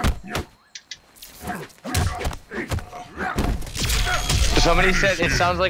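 Punches and kicks thud and crack in a fast video game fight.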